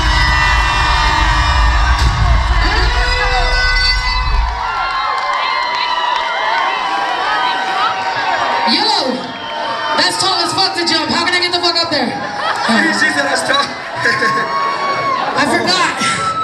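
A large crowd cheers and sings along loudly.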